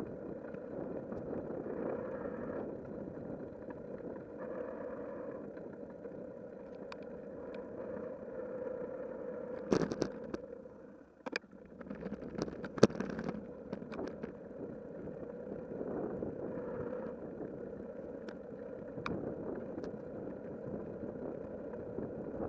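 Bicycle tyres hum on a paved path.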